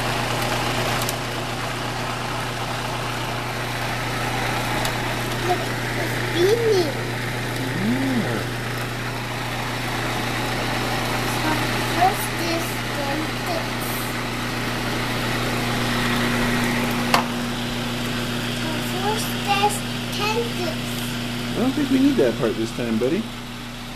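A food processor motor hums steadily.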